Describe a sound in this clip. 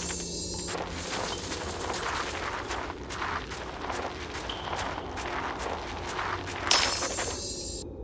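Dirt crumbles and thuds in quick bursts as a small dog digs.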